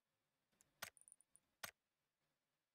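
A game menu gives short clicks as options are selected.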